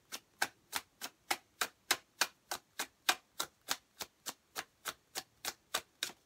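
Paper bills flick sharply one after another in quick, even rhythm, close up.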